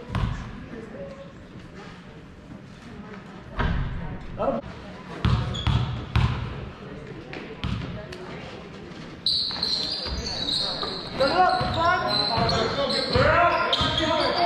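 A basketball bounces on a wooden floor in an echoing gym.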